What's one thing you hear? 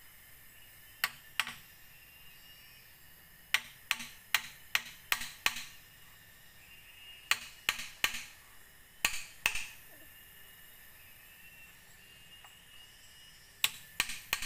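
A tool knocks sharply on bamboo in short bursts of taps.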